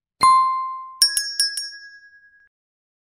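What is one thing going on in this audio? A small bell rings brightly and fades.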